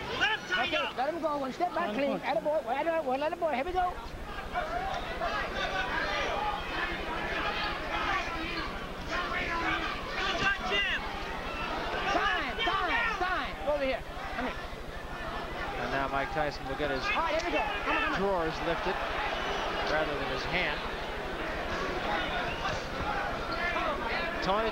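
A large crowd cheers and shouts in a big hall.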